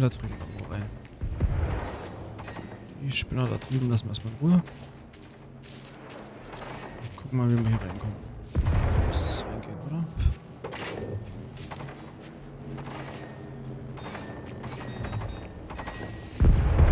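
Footsteps crunch through grass and undergrowth.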